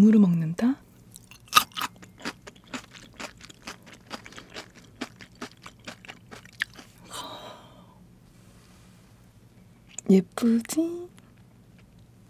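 A young woman speaks softly into a close microphone.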